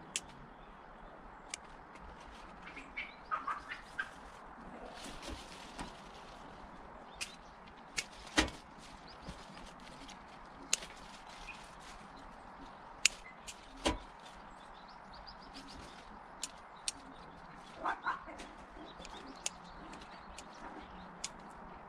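Leafy branches rustle as they are handled.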